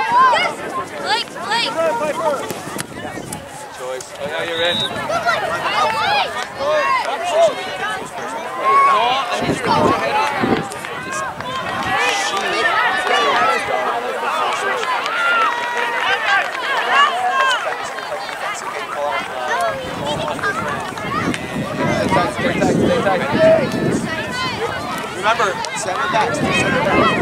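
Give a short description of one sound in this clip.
Spectators cheer and shout from the sideline.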